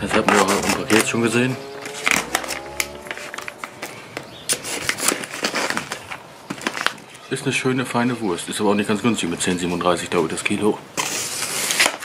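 Plastic film crinkles as it is peeled off a package.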